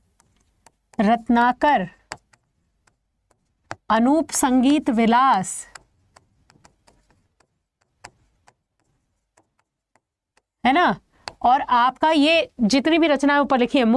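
A young woman speaks clearly and with animation into a close microphone.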